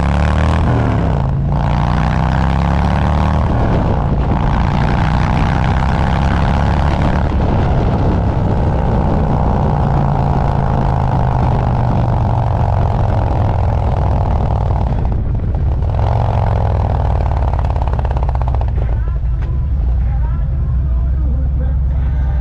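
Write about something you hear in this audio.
Wind rushes past loudly as the motorcycle rides.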